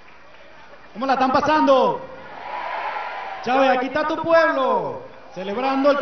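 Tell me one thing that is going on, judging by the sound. A man sings through a microphone over a loudspeaker.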